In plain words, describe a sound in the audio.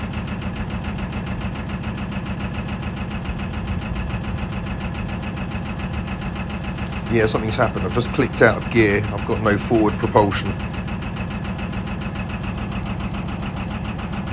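A boat engine chugs steadily close by.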